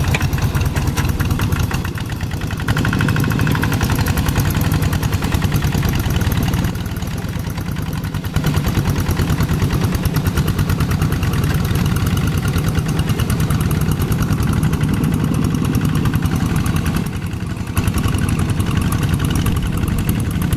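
A small diesel engine chugs loudly and steadily, close by.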